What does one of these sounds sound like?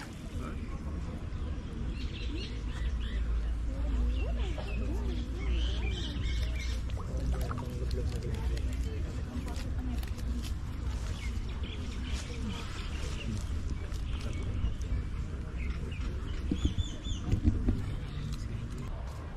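Fish splash and slurp at the water's surface close by.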